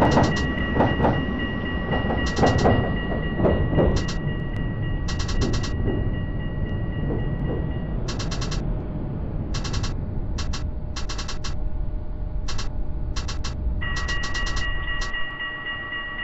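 A tram rumbles along the rails, then slows to a stop.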